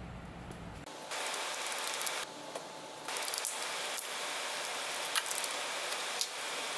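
A ratchet wrench clicks on an engine bolt.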